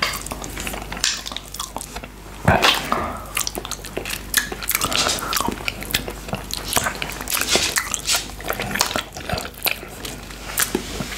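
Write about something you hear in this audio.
A man licks and slurps on a hard candy close up.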